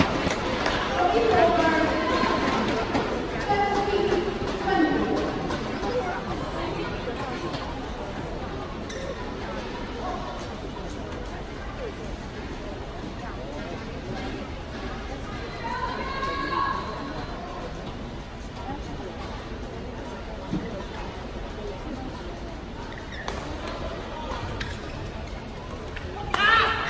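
A crowd murmurs in a large echoing hall.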